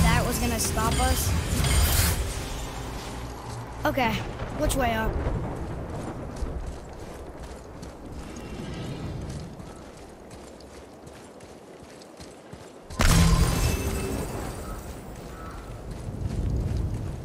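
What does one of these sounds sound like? Heavy footsteps crunch on rough ground.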